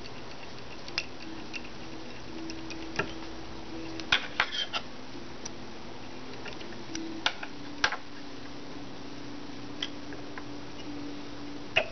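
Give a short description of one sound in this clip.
Small metal tools tap and click against a fishhook.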